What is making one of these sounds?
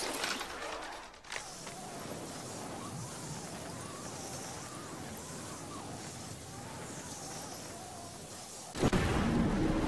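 A rushing whoosh of wind sounds as a game character drops through the air.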